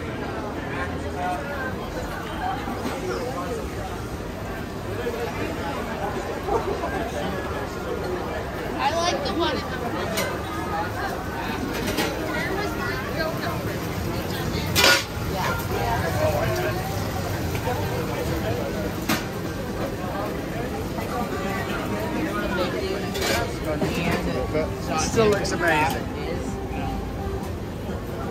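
A busy crowd murmurs with voices all around outdoors.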